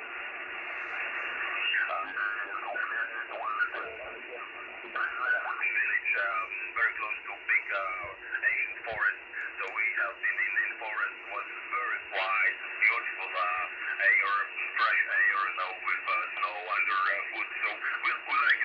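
A man talks through a radio loudspeaker, thin and crackly.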